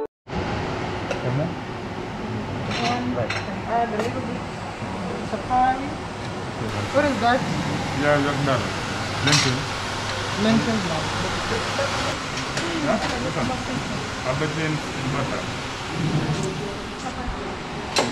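A serving spoon clinks against a metal tray.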